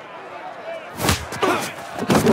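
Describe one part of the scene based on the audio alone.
A punch lands with a heavy thud.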